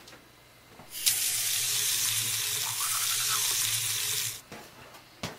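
A toothbrush scrubs teeth.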